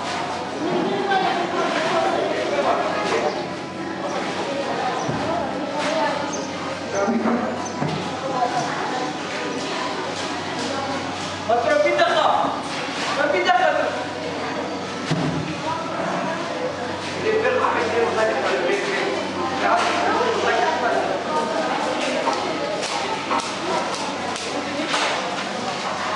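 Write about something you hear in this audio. Flower stems rustle and snap as women sort them.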